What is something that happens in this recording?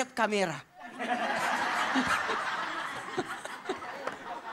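An audience cheers and claps loudly.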